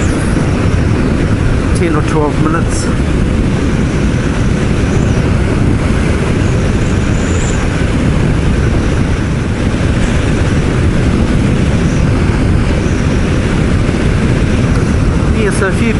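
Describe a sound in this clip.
Strong wind roars past a motorcycle rider at speed.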